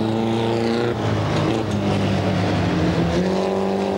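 Tyres skid and spray gravel on loose dirt.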